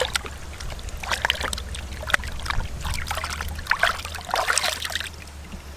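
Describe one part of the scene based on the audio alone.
A fish flaps and thrashes in water.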